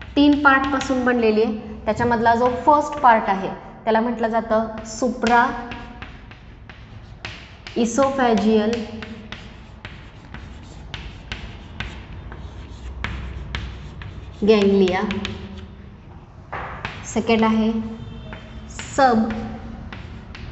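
A woman speaks calmly, explaining at a steady pace.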